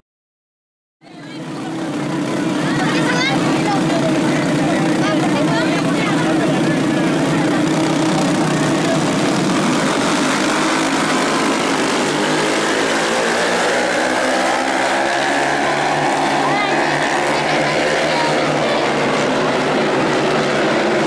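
Racing car engines roar loudly around a track.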